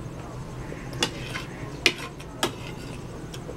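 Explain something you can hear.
A fork scrapes and taps on a plate.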